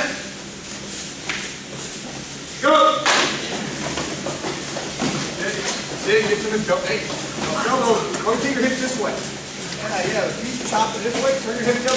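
Wrestlers' bodies thump and scuff on a mat.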